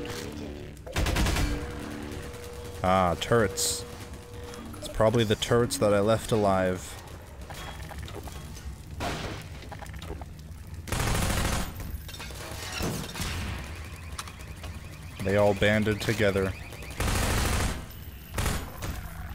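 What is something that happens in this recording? Gunshots bang in quick bursts.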